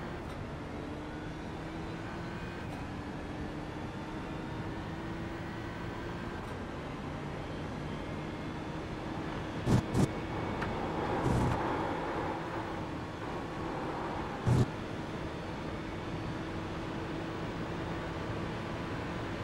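A racing car engine drones steadily at high revs, rising in pitch as it speeds up.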